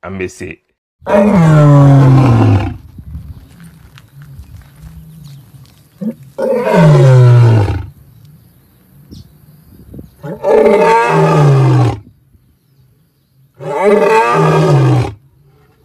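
A lion roars loudly and close, several times.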